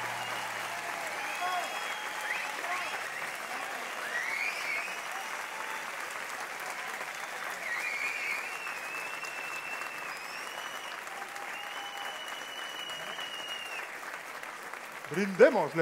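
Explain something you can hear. An orchestra plays along with the singing.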